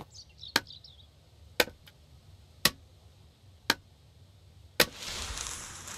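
An axe chops into a wooden log with sharp, regular thuds.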